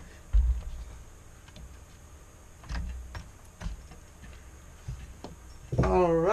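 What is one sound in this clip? Plastic parts knock and click.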